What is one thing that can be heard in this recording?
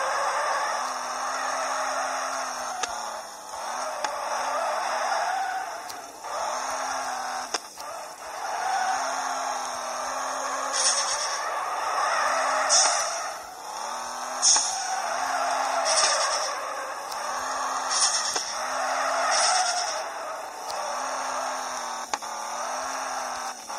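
Car tyres screech loudly as the car slides.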